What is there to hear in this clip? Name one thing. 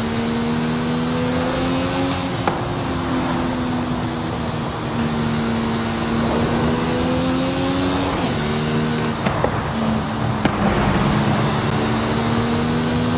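A sports car engine roars at high revs, rising in pitch and dropping sharply with each gear change.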